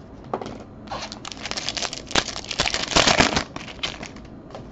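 A plastic wrapper crinkles and tears as it is ripped open.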